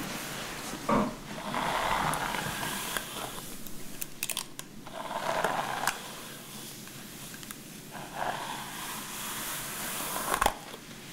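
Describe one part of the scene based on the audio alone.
A hairbrush swishes through hair in repeated strokes.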